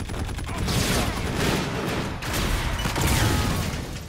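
A loud explosion booms.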